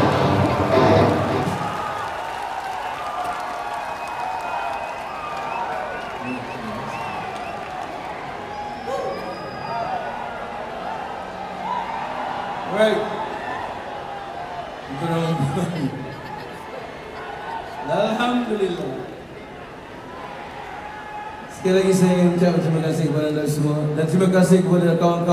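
A large crowd sings along and cheers.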